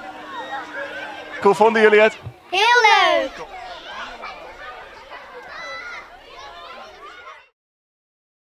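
Children shout and play outdoors.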